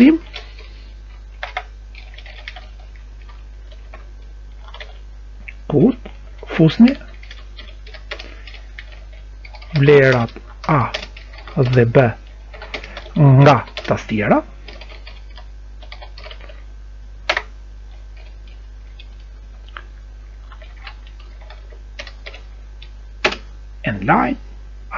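Keys tap on a computer keyboard.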